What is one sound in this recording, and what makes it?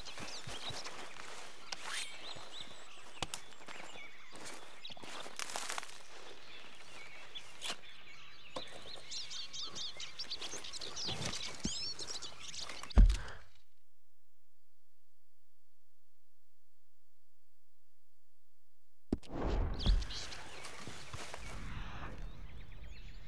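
Birds chirp and sing outdoors.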